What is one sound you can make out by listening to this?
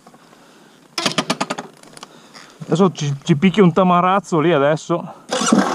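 A motorbike engine starts up and revs loudly.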